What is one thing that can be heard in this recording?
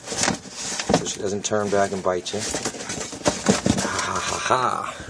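A sponge scrubs against a plastic surface.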